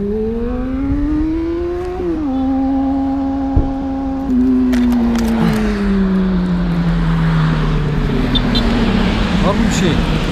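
A motorcycle engine hums, then slowly winds down.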